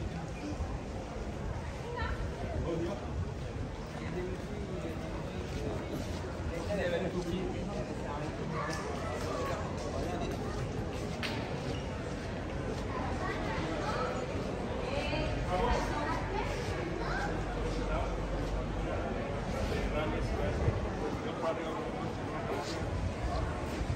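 A crowd of people chatters and murmurs nearby in an open street.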